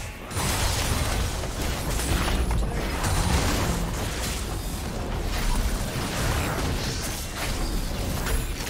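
Spell effects whoosh and blast during a battle.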